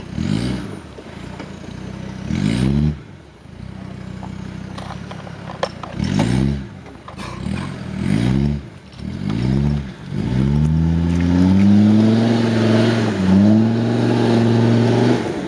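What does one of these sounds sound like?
An off-road engine revs hard in bursts, then roars steadily.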